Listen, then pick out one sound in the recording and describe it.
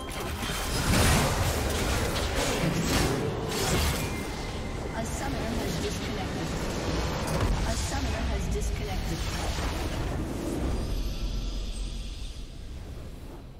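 Game battle effects crash and explode loudly.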